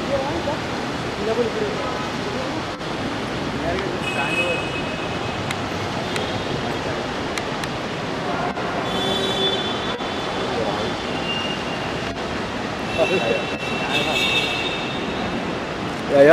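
A bustling crowd murmurs and calls out.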